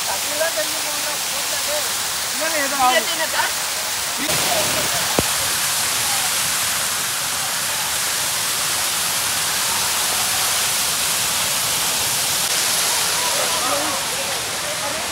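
A waterfall roars and splashes loudly.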